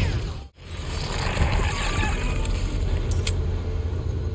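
A pistol fires a sharp shot.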